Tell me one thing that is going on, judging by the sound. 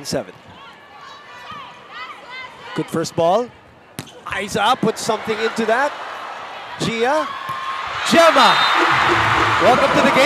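A volleyball is struck with sharp slaps during a rally.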